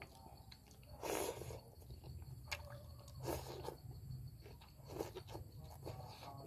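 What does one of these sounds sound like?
A man slurps noodles loudly, close by.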